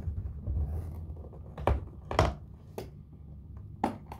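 A hard guitar case thumps down onto a tiled floor.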